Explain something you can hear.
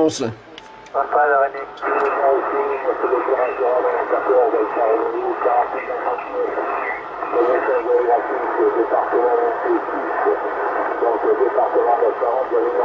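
A man's voice comes through a radio loudspeaker, thin and crackly.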